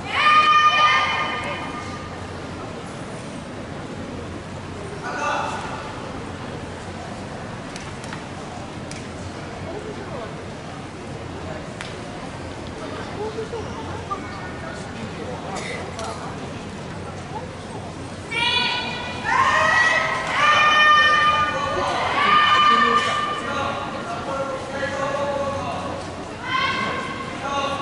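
Young people shout sharp, drawn-out cries in a large echoing hall.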